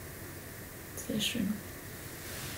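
A young woman speaks briefly and calmly close by.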